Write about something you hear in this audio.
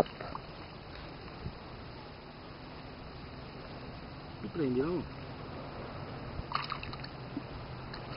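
Water splashes softly as a man wades.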